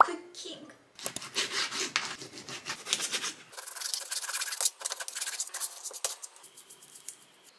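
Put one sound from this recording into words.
A knife chops through raw meat on a cutting board.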